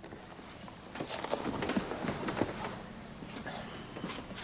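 Clothing rustles as a man gets up from a seat.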